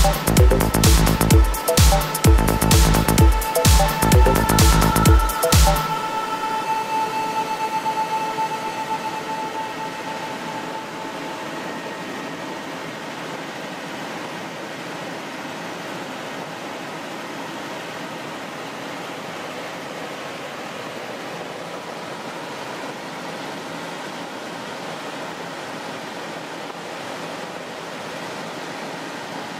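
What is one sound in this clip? A helicopter engine and rotor drone steadily from inside the cabin.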